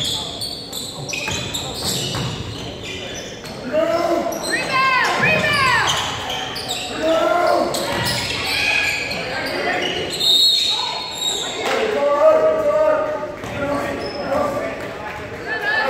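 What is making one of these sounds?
Spectators murmur and call out in a large echoing gym.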